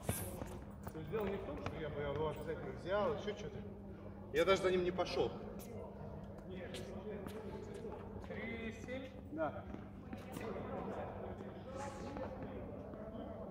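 Men talk casually nearby in a large echoing hall.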